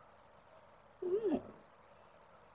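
A cat meows softly close by.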